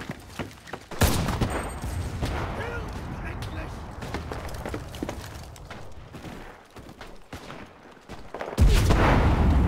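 A rifle fires loud shots that boom and echo.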